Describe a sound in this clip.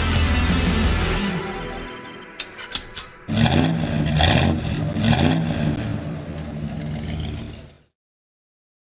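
A race car engine roars loudly.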